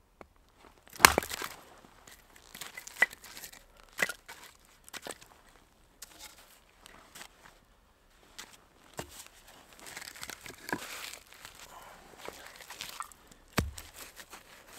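A hatchet chops into wood with sharp knocks.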